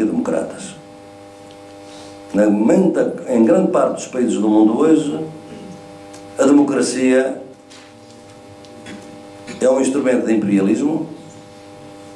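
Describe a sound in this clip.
An elderly man speaks calmly into a microphone, pausing between phrases.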